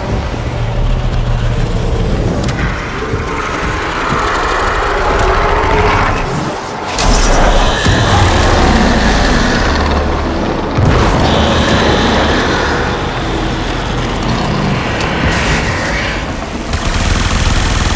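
Weapons blast and rumble in a fast-paced battle.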